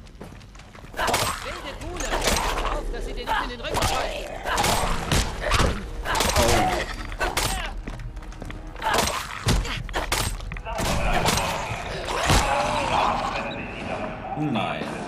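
A blade slashes and thuds into flesh repeatedly.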